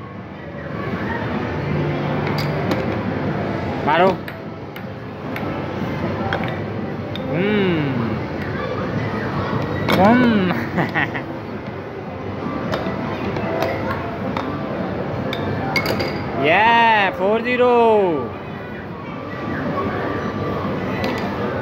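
A steady hubbub of arcade machines fills the background.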